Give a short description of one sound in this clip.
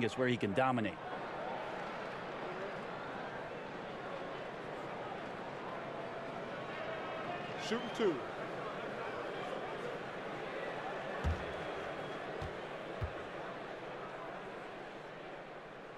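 A large crowd murmurs steadily in an echoing arena.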